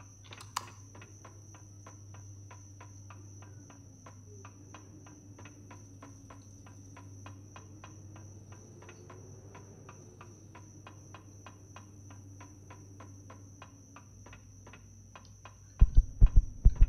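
Footsteps tread at a steady walking pace.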